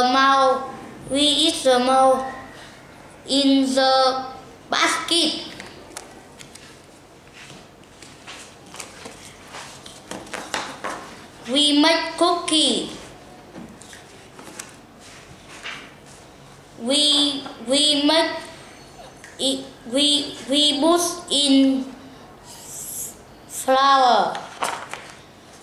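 A young boy reads aloud clearly, close by.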